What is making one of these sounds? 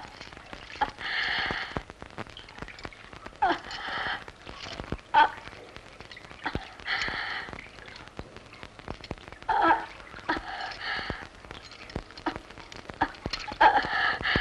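A young woman weeps and moans in bursts.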